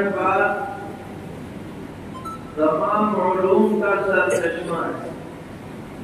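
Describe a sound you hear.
An elderly man speaks slowly and calmly into a microphone.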